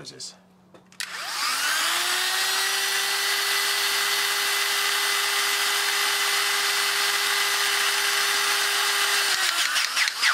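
An electric hydraulic crimping tool whirs steadily with a high motor whine, then stops.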